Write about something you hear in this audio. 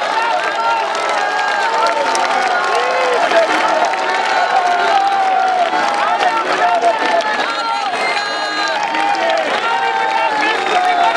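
A large crowd sings and cries out loudly outdoors, many voices together.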